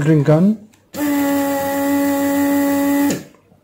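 A desoldering tool's vacuum pump hums steadily.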